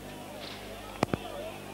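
A rugby ball is kicked with a dull thud.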